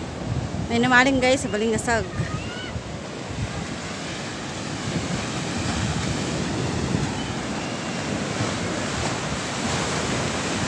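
Wind blows across the open shore.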